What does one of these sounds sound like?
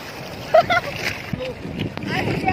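Water splashes close by.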